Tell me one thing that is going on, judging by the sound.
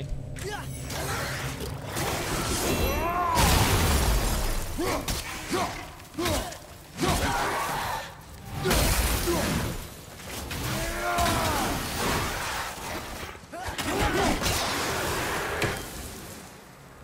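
Heavy blows and clashes of a fight thud and crack again and again.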